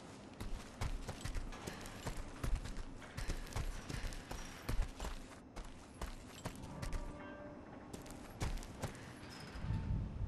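Footsteps crunch quickly on gravel as two people run.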